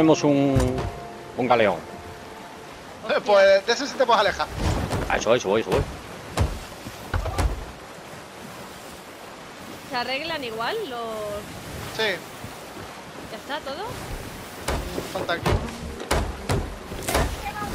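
Waves wash against a wooden ship's hull.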